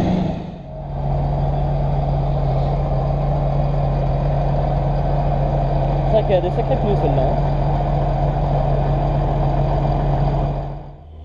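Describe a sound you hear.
A second tractor engine idles with a low steady hum.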